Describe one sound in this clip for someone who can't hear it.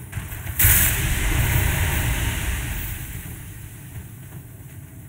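Wind blows steadily in a snowstorm.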